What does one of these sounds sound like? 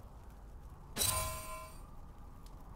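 A short game chime rings out.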